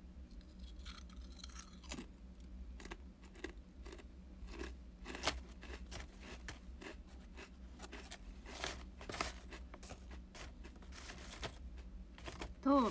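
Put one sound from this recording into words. A young woman chews food with faint clicks and smacks.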